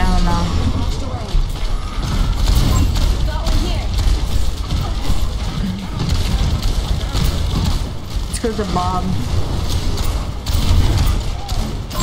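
Rapid gunfire crackles and bangs.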